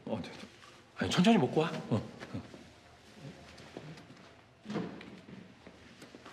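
A younger man speaks lightly, close by.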